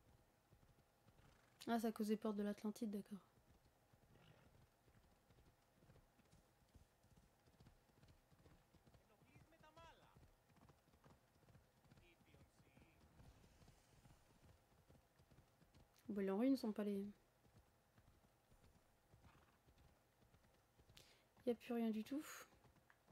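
A horse's hooves gallop on a dirt track.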